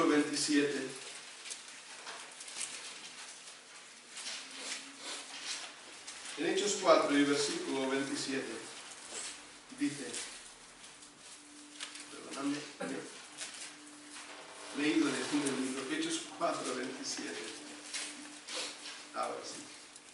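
A man speaks calmly into a microphone in an echoing room, with pauses.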